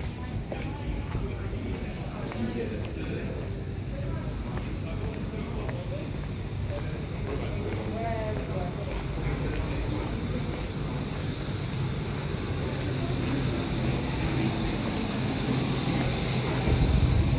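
Footsteps tap on stone paving outdoors.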